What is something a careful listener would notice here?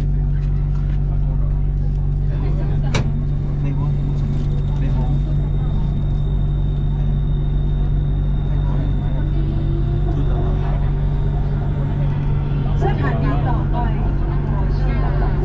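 A train rumbles and hums steadily, heard from inside a carriage.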